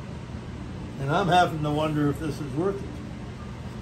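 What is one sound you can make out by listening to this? An elderly man speaks briefly and calmly nearby.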